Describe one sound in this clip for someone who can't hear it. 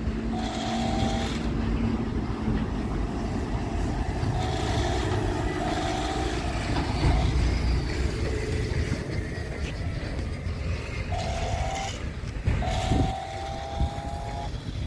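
A small toy car's electric motor whirs as it spins and rolls on concrete.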